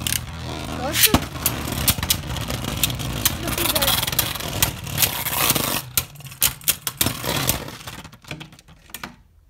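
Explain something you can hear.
Spinning tops clash and clatter against each other.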